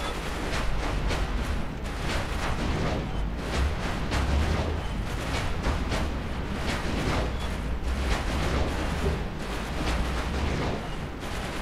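Magic blasts burst and crackle repeatedly.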